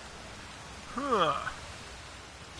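A young man makes a short, rising and falling sound into a close microphone.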